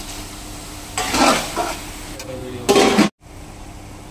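A metal spoon scrapes against a metal pot.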